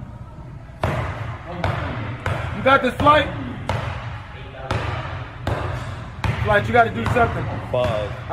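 A basketball bounces repeatedly on a hard court.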